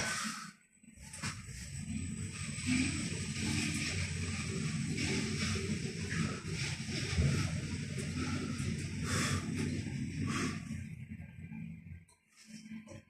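An elevator hums and rumbles steadily as it travels.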